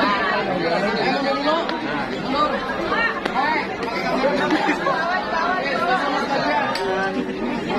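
A crowd of young women and men chatter and call out excitedly close by.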